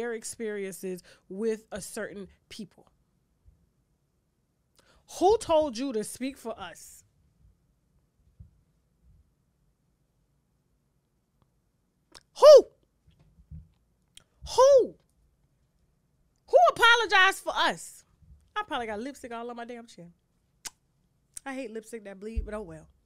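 A woman speaks with animation into a close microphone, with pauses.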